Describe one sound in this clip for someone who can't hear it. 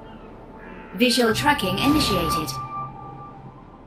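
A bright magical chime swells and rings out.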